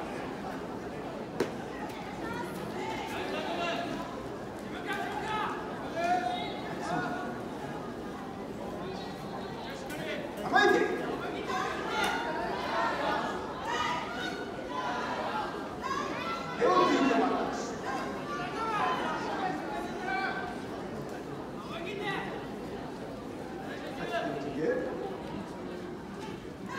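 A large crowd of spectators chatters and cheers in an open-air arena.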